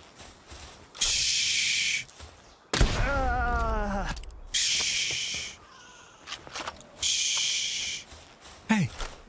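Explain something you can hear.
Bubbles burst with a bright fizzing hiss.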